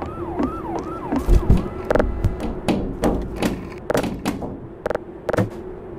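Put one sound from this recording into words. Metal cans clatter and roll across a floor.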